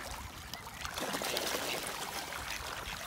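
Ducks splash in the water.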